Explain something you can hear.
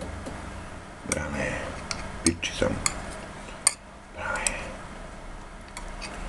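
A metal utensil clinks against a glass jar.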